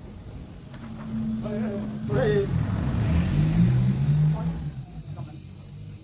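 A van engine rumbles as the van passes close by.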